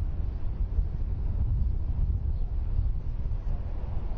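A helicopter thuds overhead.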